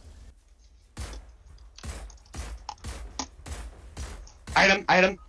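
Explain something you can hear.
Sniper rifle shots crack one after another.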